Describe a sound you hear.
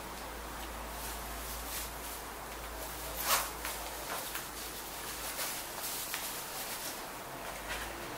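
Cutlery clinks lightly on a plate.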